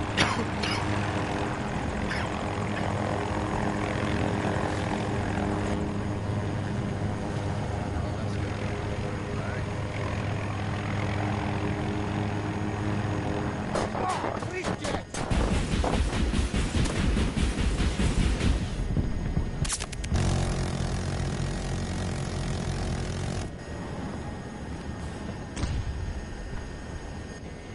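A helicopter's rotor thumps and drones steadily.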